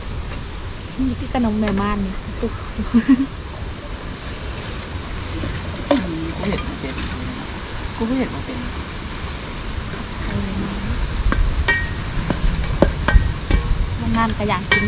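A young woman talks and laughs cheerfully nearby.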